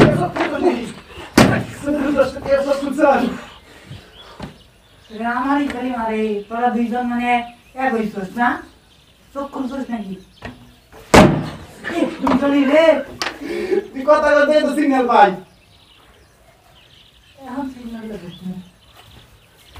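Young men talk and shout playfully close by.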